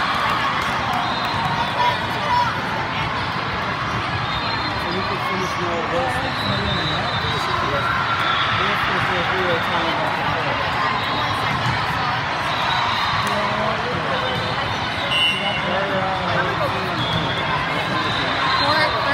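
A large echoing hall buzzes with the chatter of many people.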